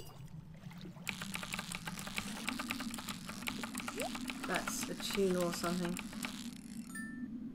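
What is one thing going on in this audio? A fishing reel clicks rapidly as a line is reeled in.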